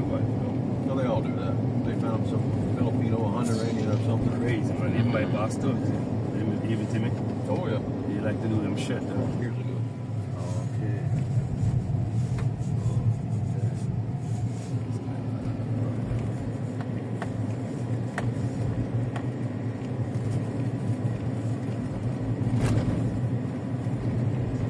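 Tyres rumble over a bumpy dirt road.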